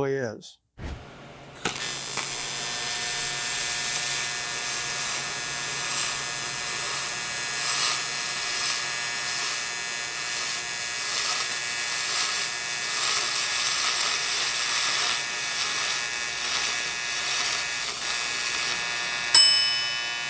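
An arc welder hisses and crackles steadily.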